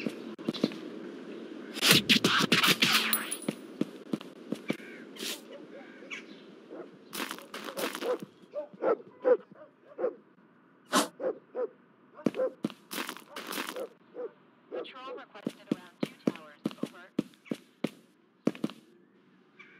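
Footsteps tread steadily on pavement and gravel.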